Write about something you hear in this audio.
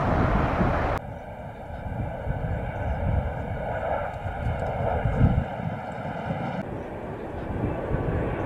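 A jet airliner's engines whine steadily as it approaches to land.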